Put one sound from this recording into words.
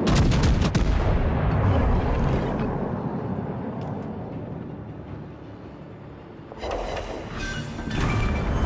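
Shells explode with deep rumbling thuds.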